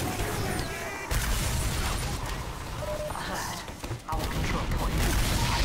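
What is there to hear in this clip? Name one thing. A shotgun fires sharp blasts.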